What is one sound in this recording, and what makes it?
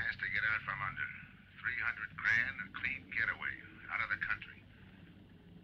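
A man's voice sounds thin and tinny through a telephone receiver.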